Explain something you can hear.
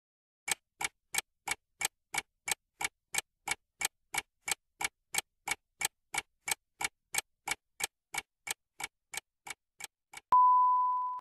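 A clock ticks steadily and quickly.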